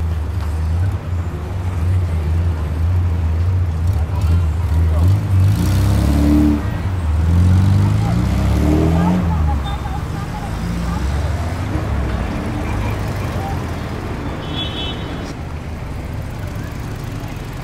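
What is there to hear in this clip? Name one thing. A bus engine rumbles and revs close by.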